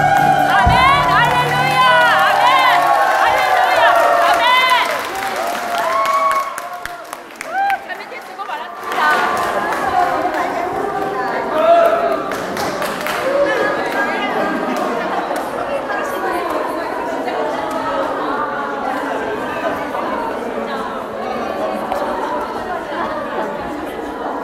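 A choir of women sings in a large echoing hall.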